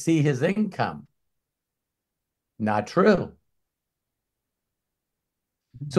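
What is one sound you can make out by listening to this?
A middle-aged man speaks calmly over an online call, in short bursts.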